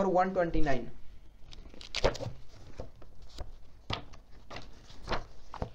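Book pages rustle and flip as they are turned.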